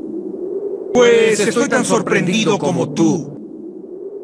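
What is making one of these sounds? A man speaks briefly in a low, menacing voice.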